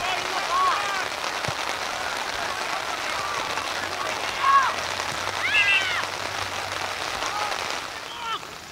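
Teenage boys shout to each other outdoors on an open field.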